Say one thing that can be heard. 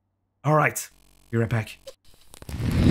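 A young man speaks playfully into a close microphone.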